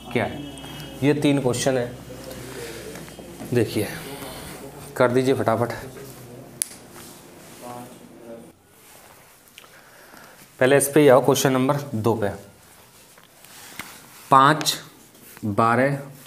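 A young man speaks calmly and clearly close by, in short bursts with pauses.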